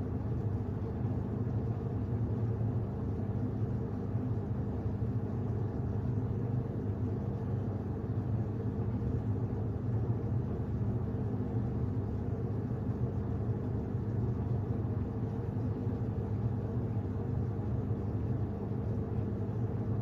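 A washing machine hums steadily with a low drone.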